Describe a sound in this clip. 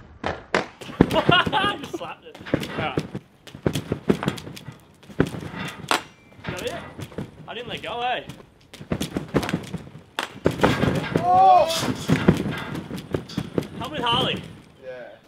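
A young man shouts excitedly nearby, outdoors.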